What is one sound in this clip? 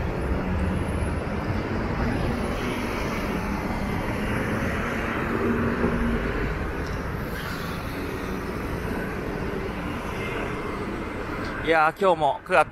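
Cars and scooters drive past with a steady rumble of engines and tyres.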